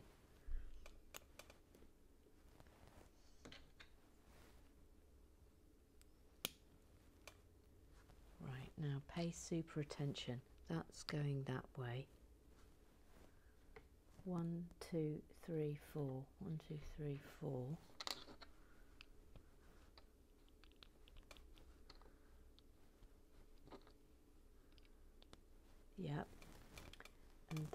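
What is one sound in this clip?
Small plastic bricks click and snap together.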